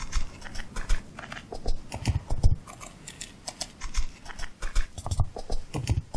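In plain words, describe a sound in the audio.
A blade knocks against a wooden crate.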